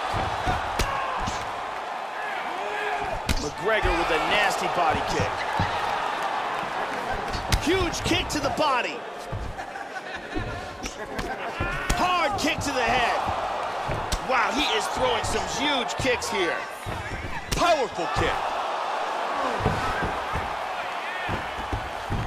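A crowd roars and cheers steadily.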